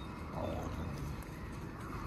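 A dog gnaws on a bone.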